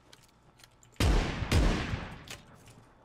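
A double-barrel shotgun fires twice in a video game.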